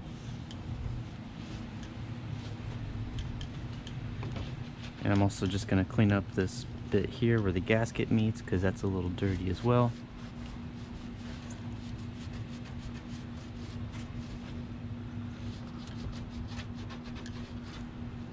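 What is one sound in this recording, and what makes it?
A cloth rubs and squeaks against a car's door.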